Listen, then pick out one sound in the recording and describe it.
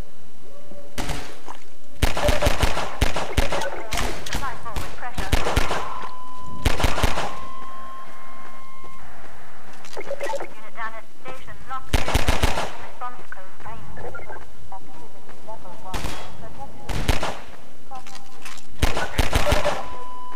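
A pistol fires repeated sharp shots.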